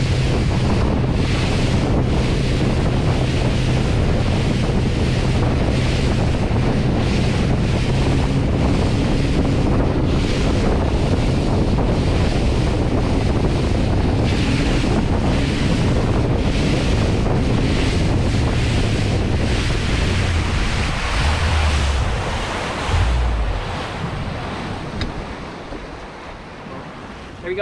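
Water rushes and splashes in the boat's wake.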